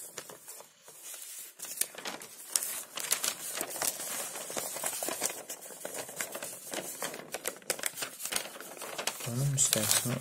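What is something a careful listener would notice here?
Paper pages rustle as they are turned over.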